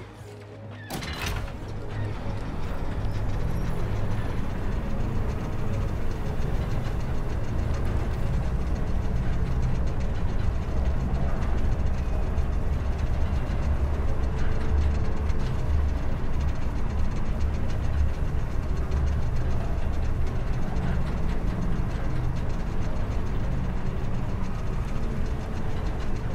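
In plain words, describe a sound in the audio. A lift rumbles steadily as it moves.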